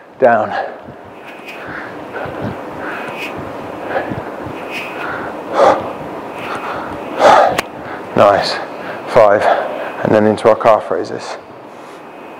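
A man speaks energetically into a close microphone.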